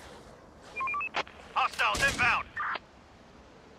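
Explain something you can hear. An explosion bursts with a loud bang.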